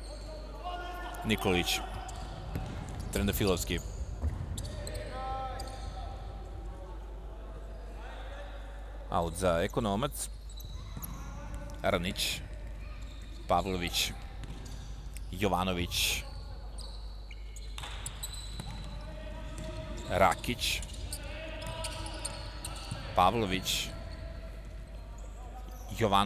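Young men shout loudly across the hall.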